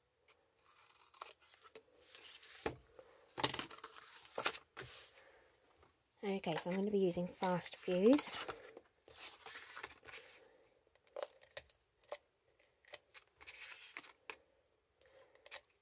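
Stiff card rustles and scrapes as it is handled on a mat.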